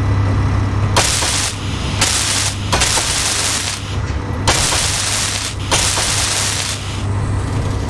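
A welding tool hisses and crackles in short bursts.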